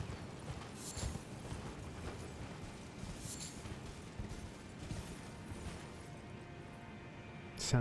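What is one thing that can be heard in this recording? A horse's hooves clop on rocky ground.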